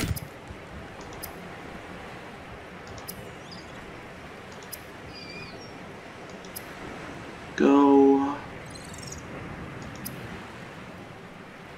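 Soft clicks tick now and then.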